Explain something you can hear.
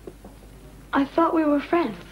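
A young man speaks, close by.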